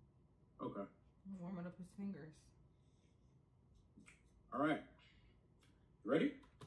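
A man speaks in short bursts, heard through a small speaker.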